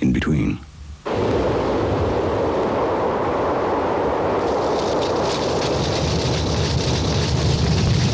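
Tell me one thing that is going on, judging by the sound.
A car drives over dry leaves.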